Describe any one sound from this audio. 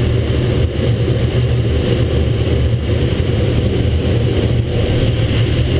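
Wind buffets a small microphone with a low, steady rumble.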